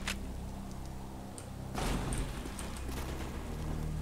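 A metal door swings open.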